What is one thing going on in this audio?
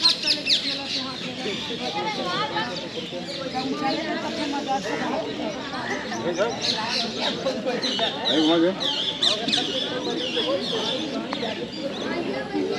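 Several people talk in the distance outdoors.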